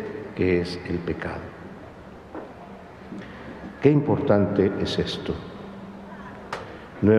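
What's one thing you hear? A middle-aged man speaks calmly into a microphone, with a slight echo.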